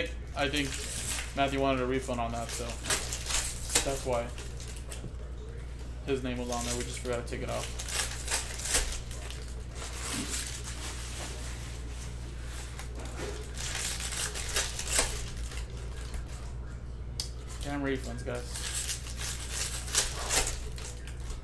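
Foil card packs crinkle and tear as hands open them.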